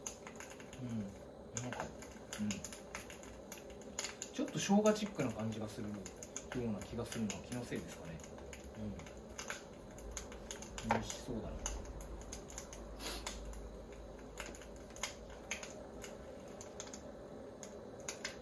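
Food sizzles and bubbles in a pot.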